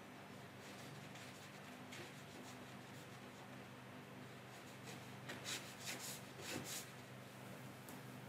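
A paintbrush strokes across watercolour paper.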